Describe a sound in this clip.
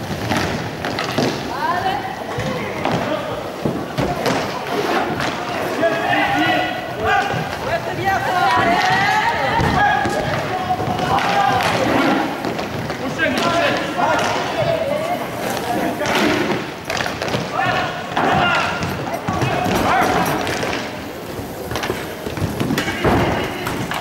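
Hockey sticks clack against a ball and each other.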